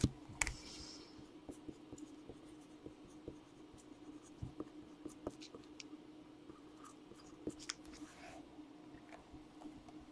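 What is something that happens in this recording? A marker squeaks as it writes on a plastic card case.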